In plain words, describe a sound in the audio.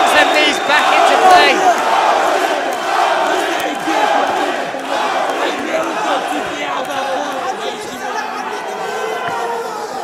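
A crowd cheers and shouts loudly in a large echoing arena.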